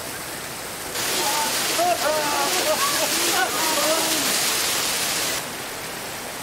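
A young man shouts and cries out under pouring water.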